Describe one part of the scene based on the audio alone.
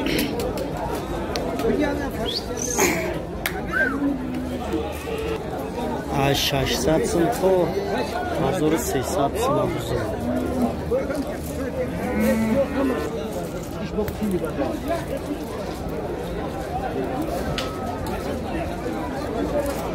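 Men chatter in a crowd outdoors.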